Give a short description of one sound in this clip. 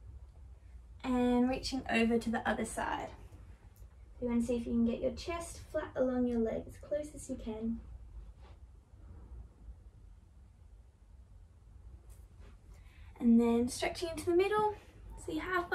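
A young woman talks calmly and cheerfully close by.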